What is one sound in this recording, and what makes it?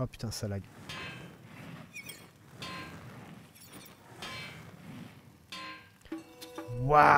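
A hammer strikes an anvil with ringing metallic clangs.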